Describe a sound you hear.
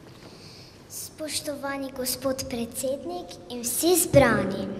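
A young girl reads out into a microphone.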